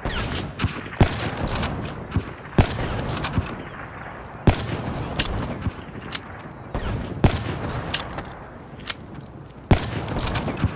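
A sniper rifle fires loud, sharp shots that ring out one at a time.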